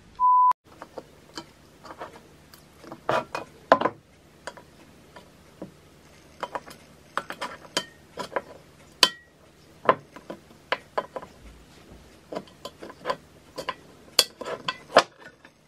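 A metal tin clicks and scrapes as hands handle it.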